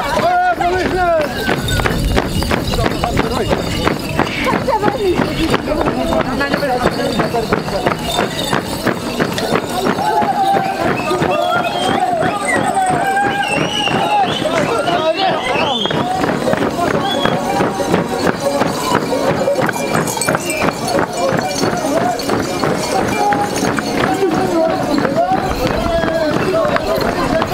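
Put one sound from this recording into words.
A crowd of men and women sings and shouts loudly nearby.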